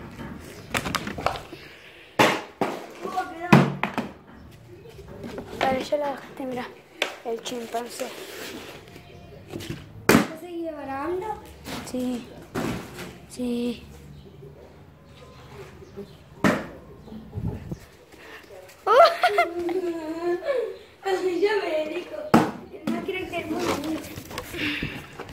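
A plastic bottle clatters and skids across a concrete floor.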